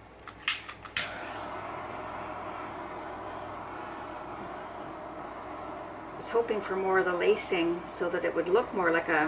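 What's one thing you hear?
A torch hisses steadily.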